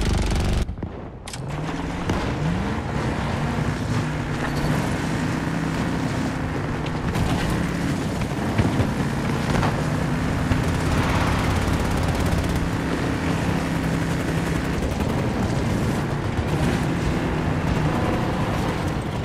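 A heavy tank engine rumbles as the tank drives.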